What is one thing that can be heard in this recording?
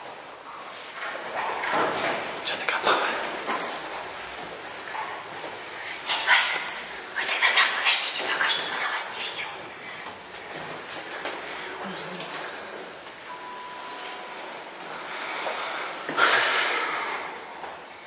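High heels click on stone stairs, heard close by.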